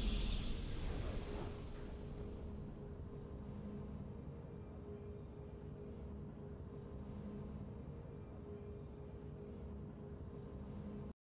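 A triumphant victory fanfare swells and then settles into soft, sustained music.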